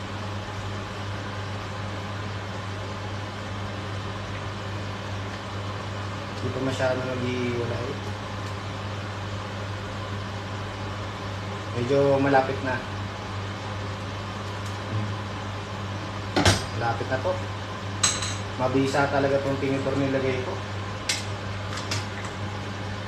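A metal ladle clinks against a metal pot.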